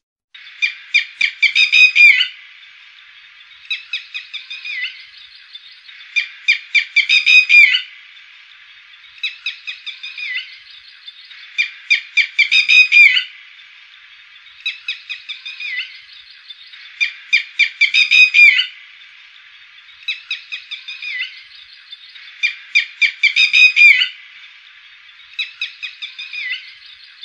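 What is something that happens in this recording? A bird gives loud, sharp calls in quick repeated bursts.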